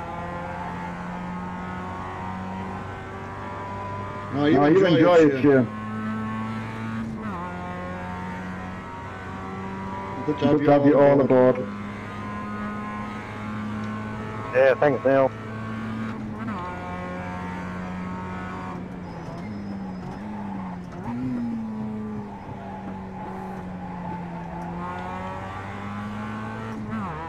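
A racing car engine drones steadily, rising and falling in pitch with gear changes.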